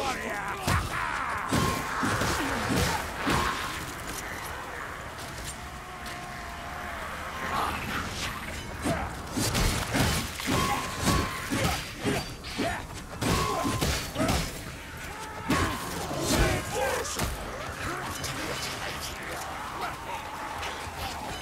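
Guns fire in sharp bangs.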